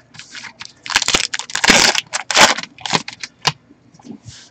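Plastic wrapping crinkles and rustles as hands tear it open.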